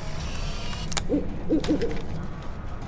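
An owl hoots softly.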